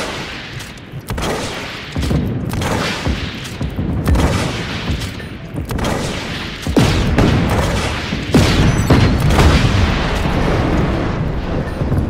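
Rockets fire and explode in loud, booming blasts one after another.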